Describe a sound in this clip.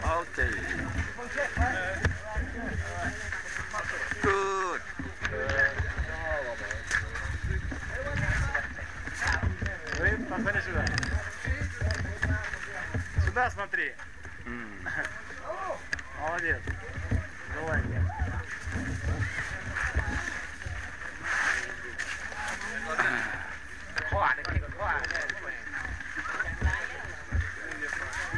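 Adult men and women chat nearby.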